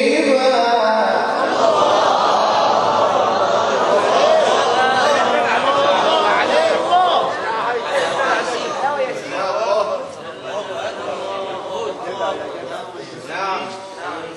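A young man chants in a drawn-out, melodic voice through a microphone and loudspeaker.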